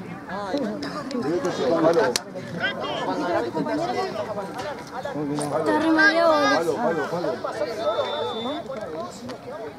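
Young men call out and talk across an open field.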